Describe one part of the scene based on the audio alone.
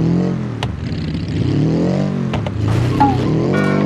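Tyres skid on dirt.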